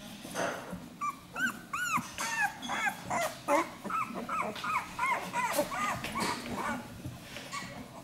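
Newborn puppies squeak and whimper in high, short cries.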